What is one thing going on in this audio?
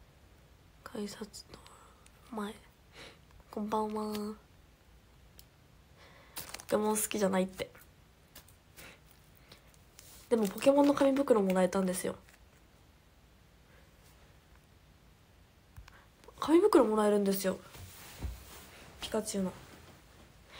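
A young woman talks casually into a nearby microphone, in short bursts with pauses.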